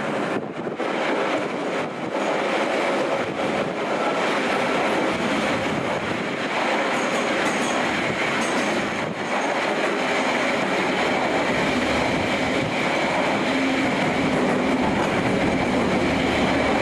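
A train rumbles and roars steadily along the tracks.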